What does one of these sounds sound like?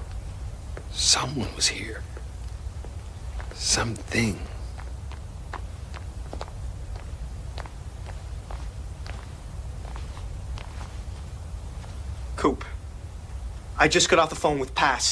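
A man speaks in short, strained bursts close by.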